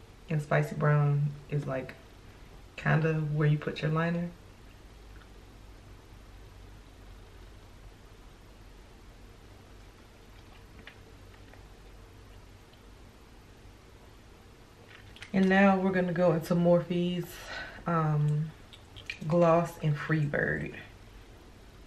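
A young woman talks calmly and close to a microphone.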